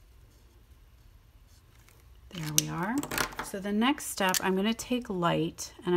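Plastic markers clatter against each other on a table.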